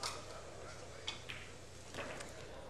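Billiard balls clack together and roll across the table.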